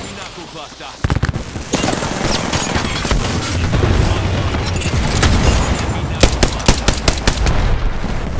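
Gunshots crack in short, sharp bursts.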